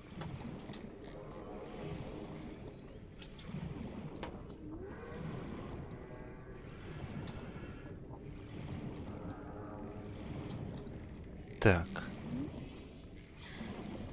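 Deep underwater ambience rumbles and gurgles steadily.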